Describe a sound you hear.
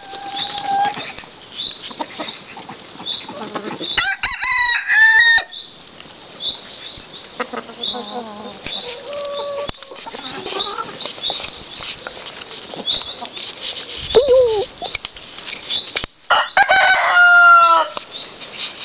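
Hens cluck and chirp close by throughout.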